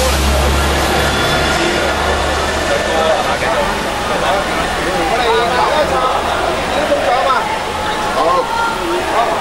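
A man speaks steadily through a microphone and loudspeakers.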